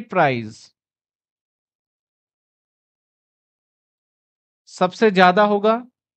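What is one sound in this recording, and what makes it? A man speaks through a clip-on microphone in a lecturing tone.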